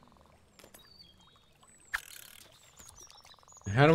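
A fishing line plops into water.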